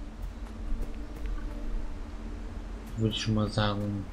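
Light footsteps patter quickly on soft ground.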